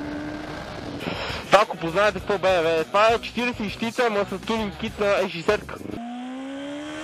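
A motorcycle engine revs loudly in quick, sharp bursts.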